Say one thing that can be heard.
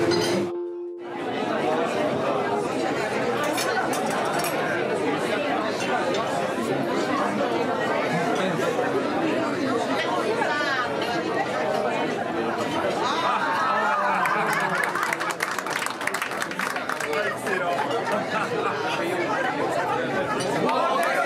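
A crowd of men and women chatters and murmurs in a busy room.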